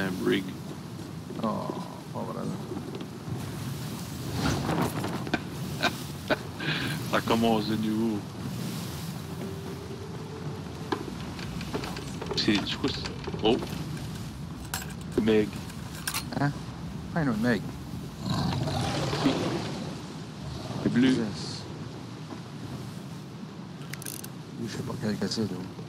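Wind blows strongly over open water.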